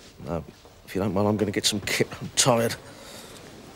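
An older man speaks.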